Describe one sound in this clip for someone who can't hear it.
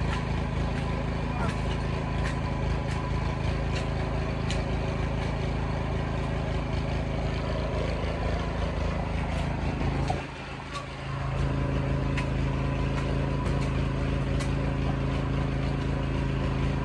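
A rake scrapes through loose soil.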